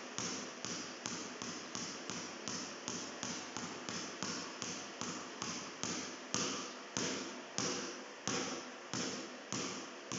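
A basketball bounces steadily on a hard floor, echoing in a large hall.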